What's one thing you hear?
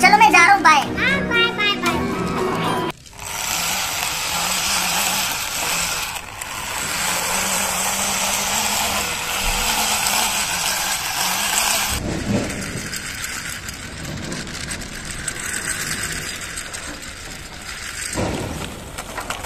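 Plastic toy wheels roll across a rough ledge.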